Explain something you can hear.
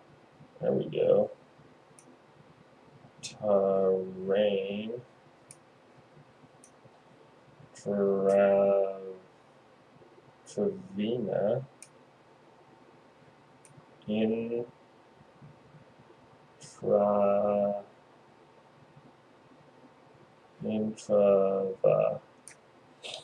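A man speaks in short bursts, heard close through a microphone.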